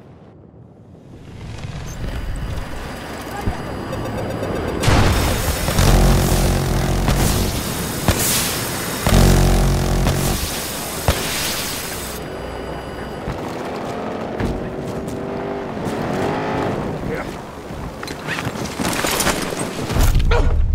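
A helicopter's rotor thumps and its engine roars close by.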